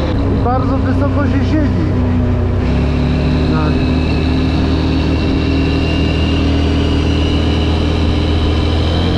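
A vehicle engine drones while cruising along an asphalt road.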